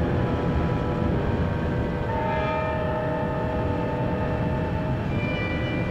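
Car engines rumble low and steady.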